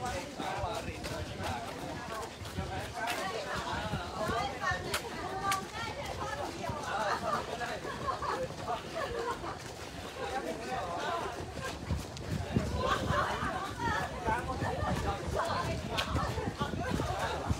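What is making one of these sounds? Several runners chat and call out outdoors.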